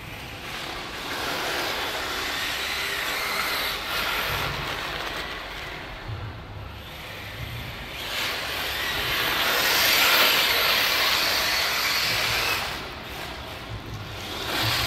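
A small electric motor of a toy car whines and buzzes as it speeds across dirt.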